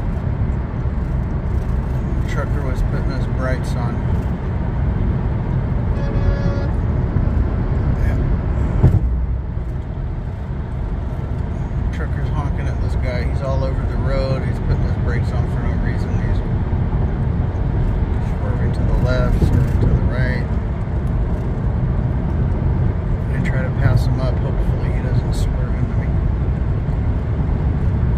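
A car engine and tyres rumble steadily on a highway.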